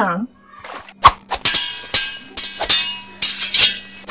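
A bat strikes with sharp, loud smacks.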